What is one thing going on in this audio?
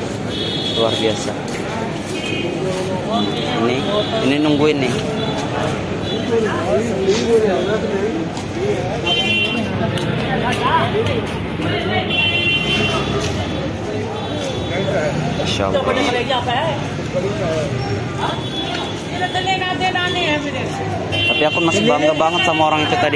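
A busy crowd of men and women chatters all around outdoors.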